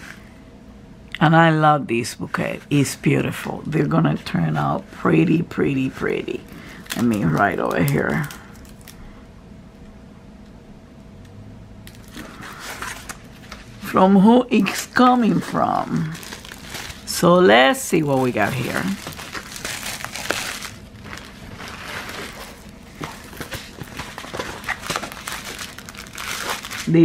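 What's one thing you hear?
Plastic wrapping crinkles and rustles under hands.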